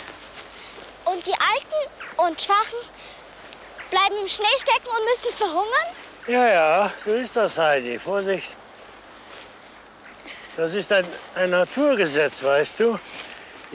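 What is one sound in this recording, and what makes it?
A young girl speaks with animation outdoors.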